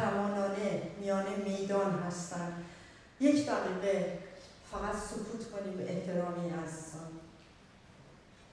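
A woman speaks with animation into a microphone, heard through loudspeakers.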